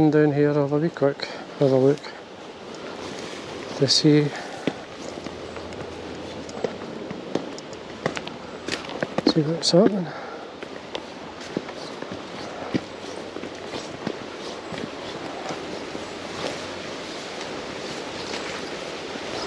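Footsteps crunch slowly on a dirt path.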